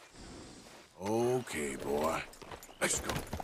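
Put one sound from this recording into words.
A horse whinnies close by.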